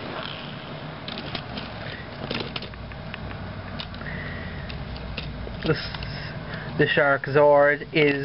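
Plastic toy parts click and rattle as hands handle them.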